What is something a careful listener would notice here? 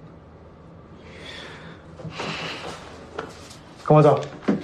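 A brush scrubs a toilet bowl.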